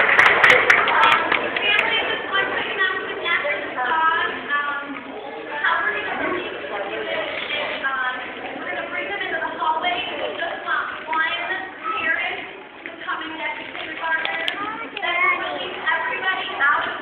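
A choir of young children sings together in a large echoing hall.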